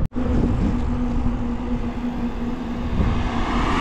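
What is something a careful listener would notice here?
A car approaches along the road.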